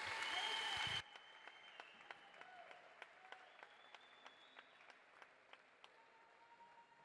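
A few people clap their hands.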